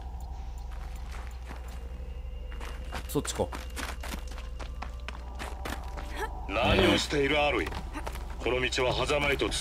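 Footsteps crunch quickly over snow and rock.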